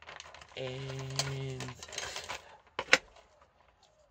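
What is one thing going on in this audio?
A plastic disc knocks down onto a tabletop.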